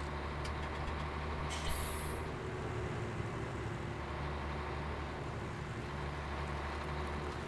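A diesel truck engine hums while driving at low speed.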